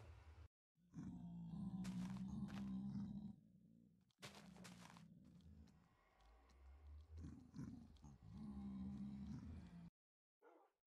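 A portal hums with a low, wavering whoosh.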